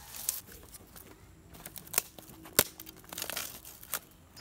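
Dry sticks crack and snap underfoot.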